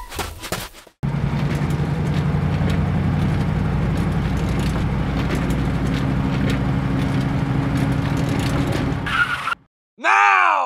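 A small toy motor whirs steadily.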